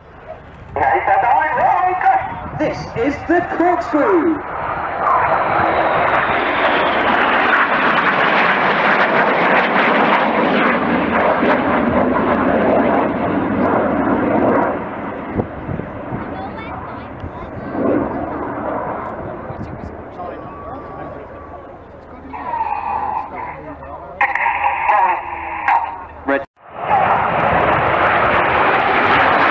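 A formation of jet trainers roars overhead.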